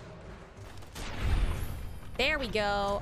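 A laser gun fires with a sharp crackling blast.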